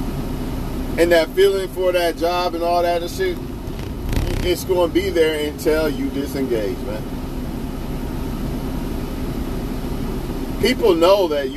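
A man speaks close by, in short bursts.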